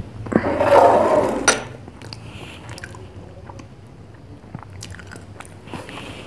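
Glasses clink and scrape on a wooden table.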